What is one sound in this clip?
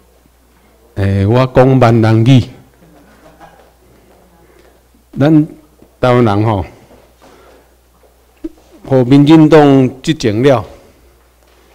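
A man speaks through a microphone over loudspeakers in a large room, in short bursts.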